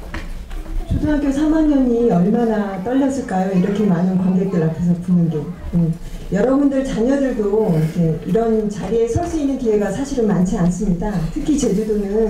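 A woman speaks calmly through a loudspeaker in a large echoing hall.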